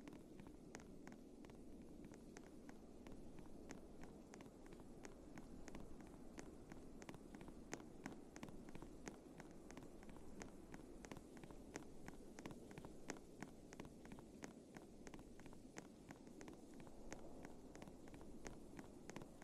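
Footsteps crunch quickly and steadily through snow.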